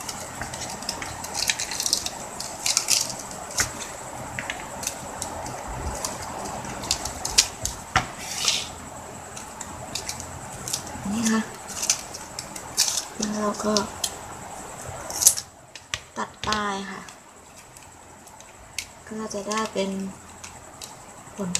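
Plastic ribbon crinkles and rustles in hands.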